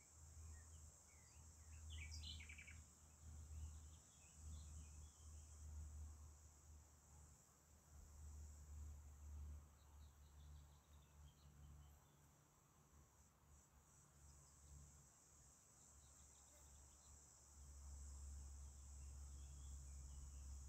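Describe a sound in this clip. Wind gusts and buffets outdoors.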